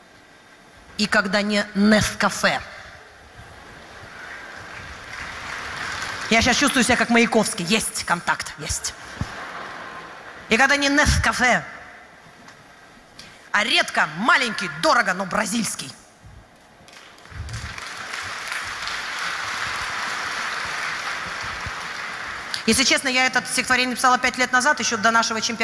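A woman speaks with animation into a microphone over loudspeakers.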